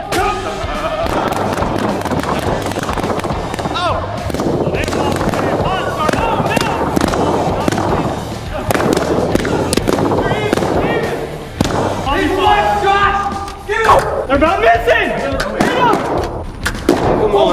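Young men shout and talk excitedly, echoing in a large hall.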